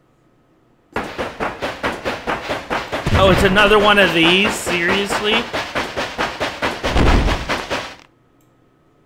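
A mine cart clatters along rails in a steady rhythm.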